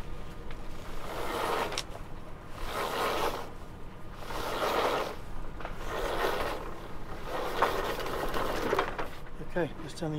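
A man winches in a sailing rope.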